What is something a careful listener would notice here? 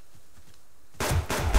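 A gun fires a loud shot.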